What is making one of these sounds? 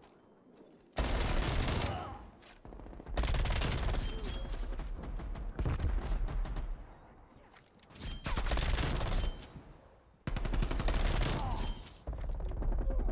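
Rapid gunfire bursts out loudly in repeated volleys.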